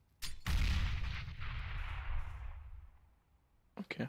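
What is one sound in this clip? A smoke grenade bursts with a loud hiss that slowly fades.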